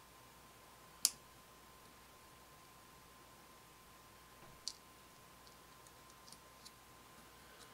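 Metal tweezers click faintly against small plastic parts.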